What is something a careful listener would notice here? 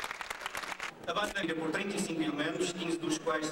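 A man speaks calmly into a microphone over a loudspeaker.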